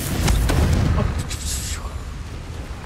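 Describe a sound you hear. Magic spells crackle and burst with sharp blasts.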